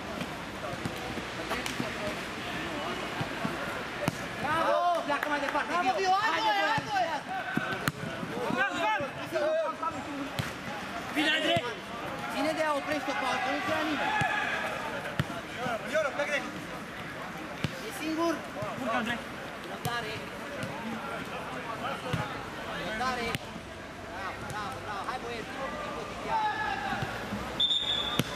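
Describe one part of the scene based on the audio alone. Young men shout and call to each other from across an outdoor pitch.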